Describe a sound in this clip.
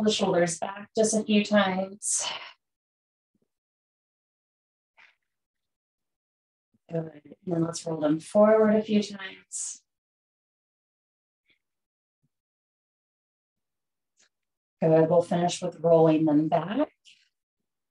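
A woman speaks calmly and slowly, close to a microphone, with long pauses.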